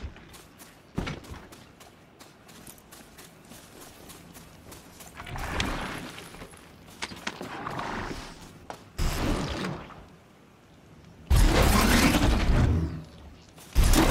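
Heavy metal feet clank on stone as a machine walks.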